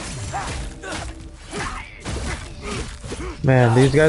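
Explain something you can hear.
An axe whooshes through the air and strikes.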